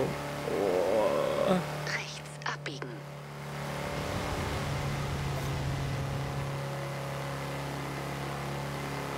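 A van engine hums steadily at speed.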